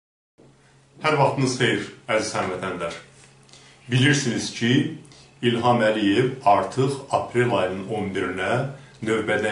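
A middle-aged man speaks calmly and firmly into a close microphone.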